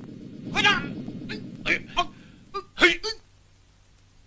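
Swords clash and clang with sharp metallic rings.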